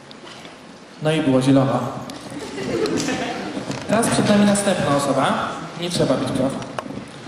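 A young man speaks with animation into a microphone, heard over loudspeakers in a large hall.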